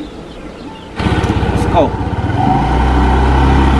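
A scooter engine starts and runs with a steady rumble.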